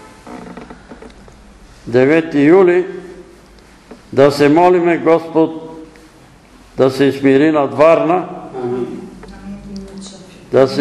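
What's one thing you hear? An elderly man reads aloud in a slow, sing-song voice in a bare room with some echo.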